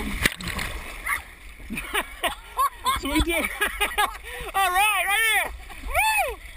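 Water churns and splashes as a rider falls in.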